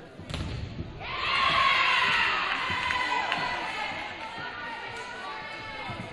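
Young women players cheer and shout in an echoing gym after a point.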